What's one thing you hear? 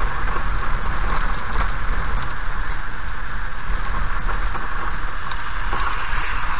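Raindrops tap lightly on a windscreen.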